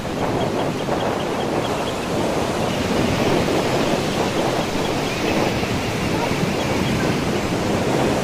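Water splashes as a boy rolls in the shallow waves.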